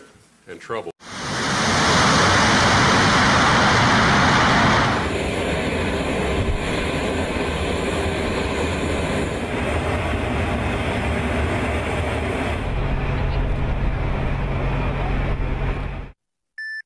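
A jet aircraft engine roars steadily.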